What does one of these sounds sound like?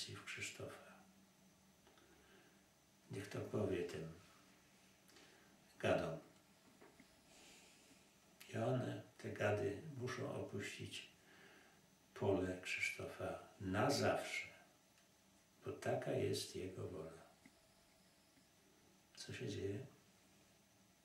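An elderly man speaks softly and slowly, close by, with long pauses.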